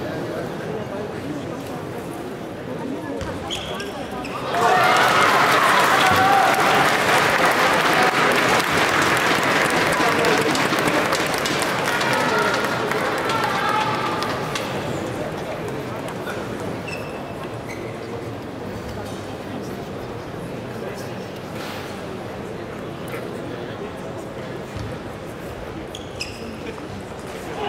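A ball clicks sharply off paddles and a table.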